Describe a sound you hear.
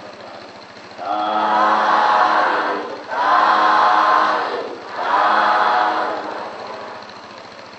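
A man chants slowly into a microphone, with a slight echo.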